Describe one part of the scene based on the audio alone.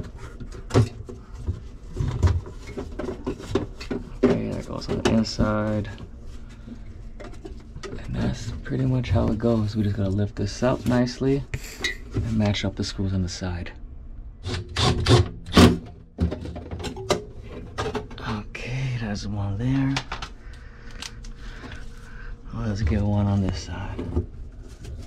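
Metal parts clink and knock as they are handled.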